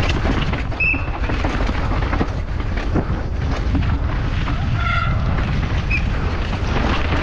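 Bike tyres rumble and skid over loose dirt and rocks.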